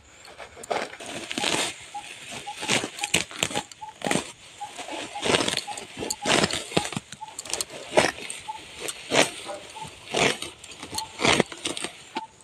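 A sickle slices through grass and weeds in quick, repeated strokes.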